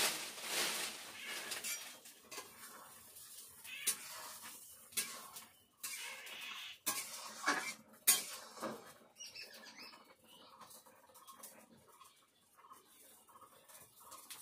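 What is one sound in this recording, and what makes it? Food sizzles in hot oil in a pan.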